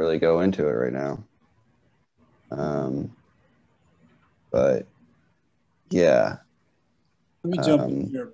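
A man speaks with animation over an online call, in short bursts with pauses.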